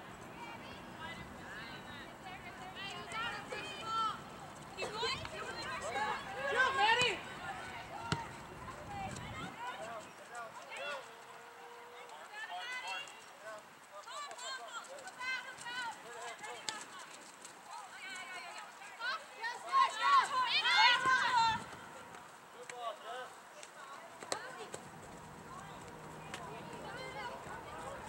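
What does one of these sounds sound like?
Young women and spectators shout and call out across an open field outdoors.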